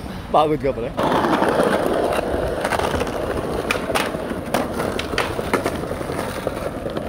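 Skateboard wheels roll and rumble over pavement.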